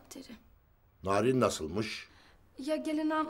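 An elderly man speaks angrily.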